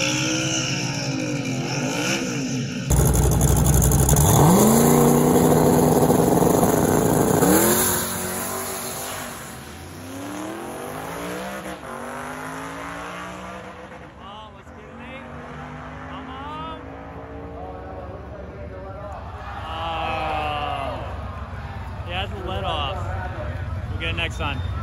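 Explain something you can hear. A car engine revs hard and roars loudly.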